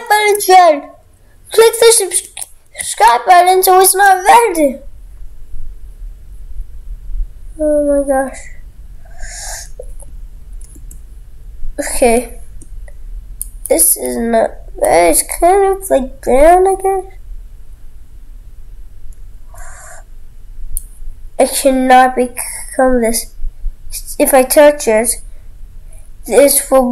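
A young boy talks close to a microphone, on and off.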